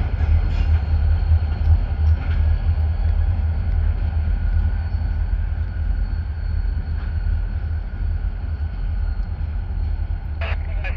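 Diesel freight locomotives rumble in the distance, approaching slowly.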